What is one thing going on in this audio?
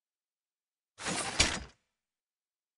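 A video game weapon clanks and whirs as it is readied.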